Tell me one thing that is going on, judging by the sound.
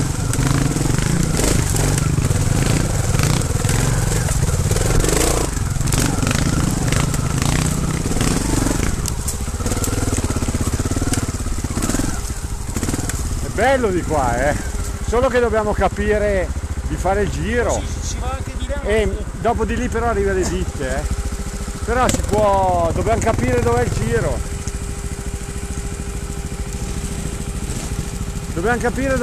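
A motorcycle engine rumbles and revs close by.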